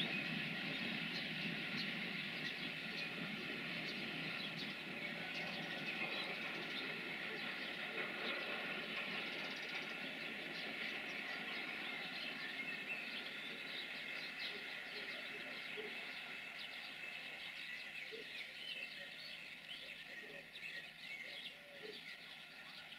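A freight train rumbles and clatters along the rails, slowly fading into the distance.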